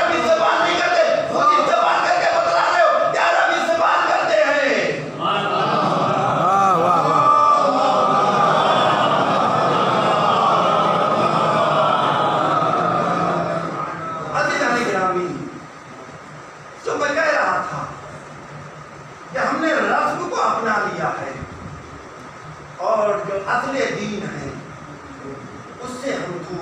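A man recites in a drawn-out, melodic voice through a microphone in an echoing room.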